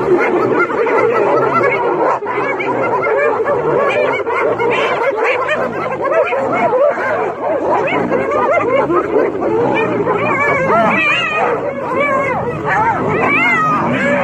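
A lioness snarls and growls up close.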